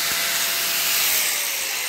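An angle grinder winds down at the end.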